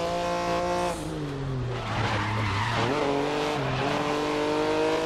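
A racing prototype's engine drops in pitch as the car brakes and shifts down.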